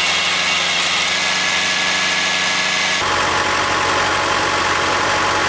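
A wood chipper engine roars steadily.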